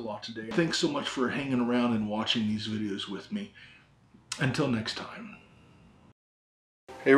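A man talks calmly into a microphone.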